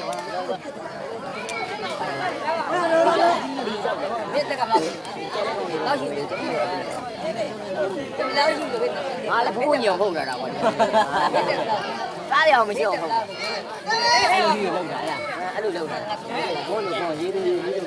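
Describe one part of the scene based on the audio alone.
Men shout and cheer loudly nearby.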